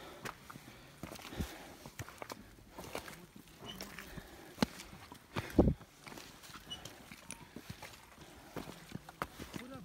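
Footsteps crunch on gravel and snow.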